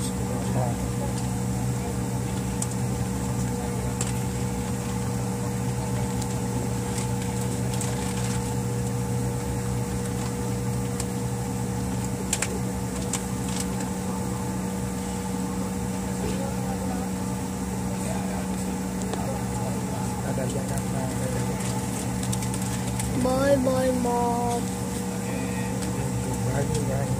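Jet engines hum steadily from inside a taxiing airliner.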